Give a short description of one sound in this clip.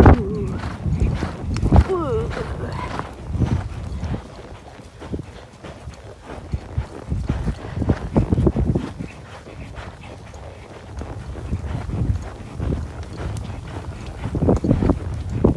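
Horse hooves thud steadily on a trail.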